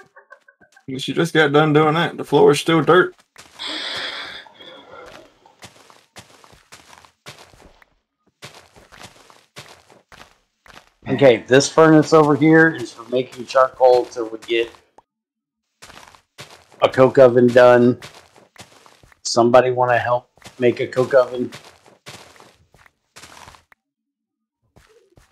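Dirt blocks crunch and break in quick, repeated digs.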